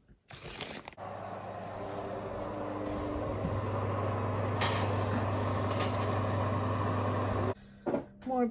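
An oven fan hums steadily.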